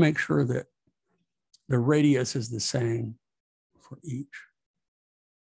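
An elderly man speaks calmly and close to a microphone, in short phrases.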